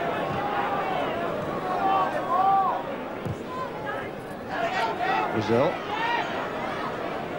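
A large crowd roars and whistles in an open stadium.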